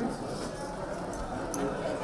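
Serving spoons clink against metal dishes and plates.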